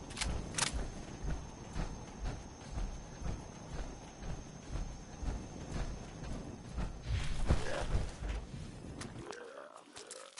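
Heavy metal footsteps thud steadily on a hard floor.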